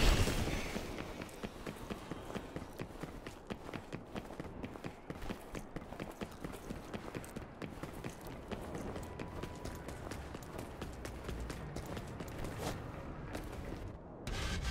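Slow footsteps crunch on rubble.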